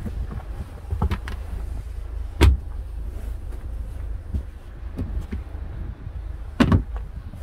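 A gloved hand pats a carpeted surface with soft thumps.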